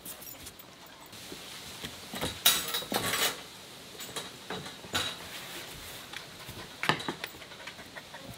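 A puppy's paws patter and scrabble on a wooden floor.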